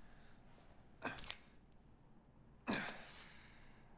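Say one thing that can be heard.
A small metal object clicks and scrapes against a stone wall.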